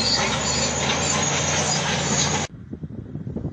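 A bulldozer engine roars loudly.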